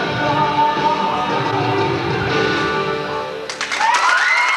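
A rock band plays loudly through amplifiers.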